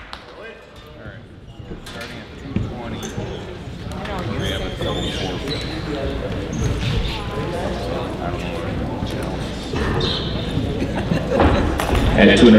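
Several adults talk quietly nearby in a large echoing hall.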